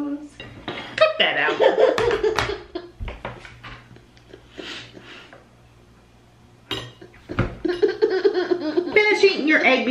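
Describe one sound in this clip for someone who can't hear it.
A toddler laughs loudly and giggles.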